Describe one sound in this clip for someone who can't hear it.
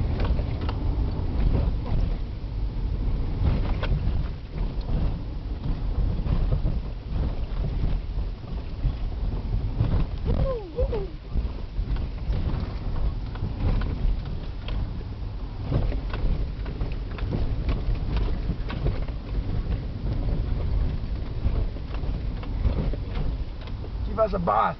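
Tyres splash and bump over a muddy, potholed road.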